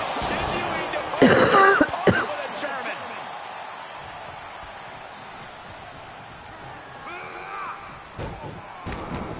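Heavy thuds of bodies hit a wrestling mat.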